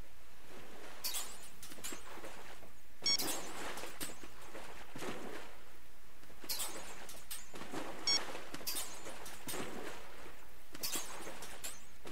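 Sea water splashes against a moving boat.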